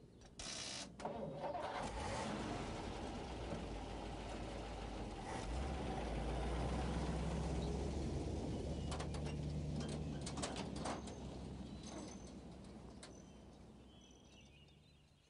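An old truck engine rumbles as the truck drives away, slowly fading.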